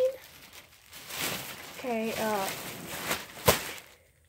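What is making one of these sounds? Plastic crinkles and rustles close by.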